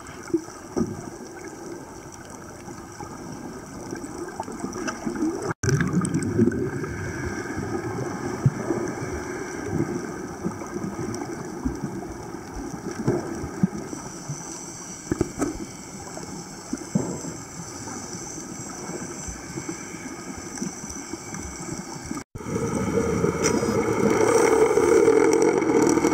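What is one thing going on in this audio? Water rushes with a low, muffled underwater roar.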